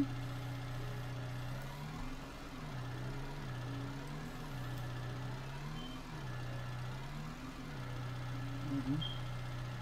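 A skid steer loader's diesel engine hums and revs up and down as it drives.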